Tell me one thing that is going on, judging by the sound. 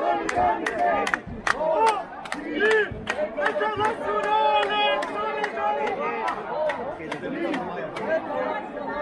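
A crowd claps in sharp, even beats.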